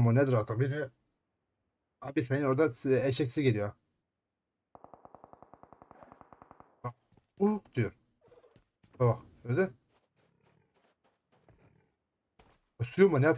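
A man talks with animation close to a headset microphone.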